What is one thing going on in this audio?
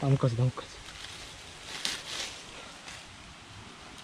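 Dry leaves rustle and crackle under a hand.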